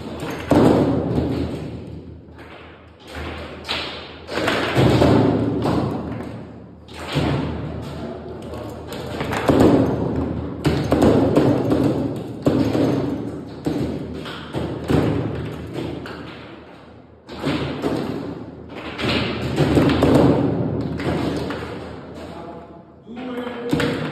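Metal rods rattle and clatter as they spin and slide.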